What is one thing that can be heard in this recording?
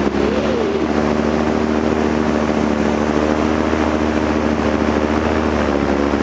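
A paramotor engine drones steadily in flight.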